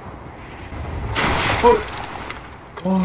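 A glider crashes hard into the ground.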